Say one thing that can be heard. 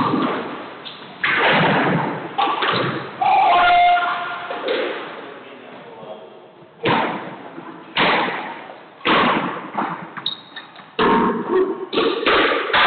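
A squash ball smacks against the walls and racket, echoing in a hard, reverberant room.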